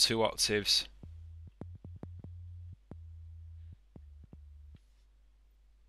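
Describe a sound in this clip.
A synthesizer plays short, low, buzzing bass notes.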